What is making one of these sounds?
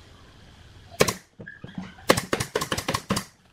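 A pneumatic nail gun fires nails into wood in quick sharp bursts.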